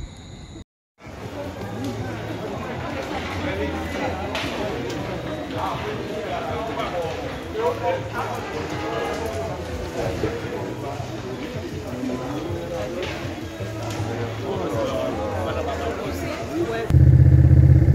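A crowd of men shout excitedly nearby.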